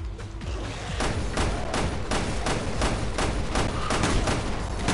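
Guns fire shot after shot at a steady pace.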